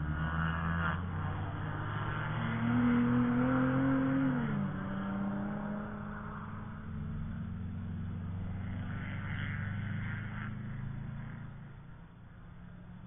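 A car engine roars, shifts gears and fades into the distance.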